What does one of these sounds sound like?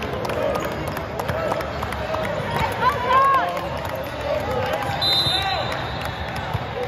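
Sneakers squeak on a sports court floor.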